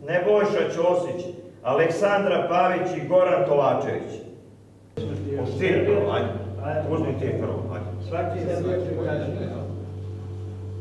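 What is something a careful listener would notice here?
Men talk with animation nearby.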